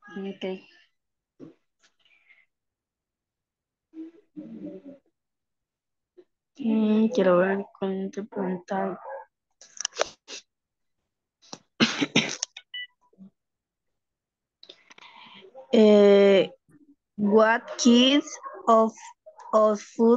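A middle-aged woman speaks calmly over an online call, with pauses.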